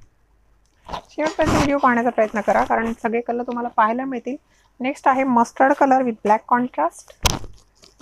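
A woman speaks calmly and closely into a clip-on microphone.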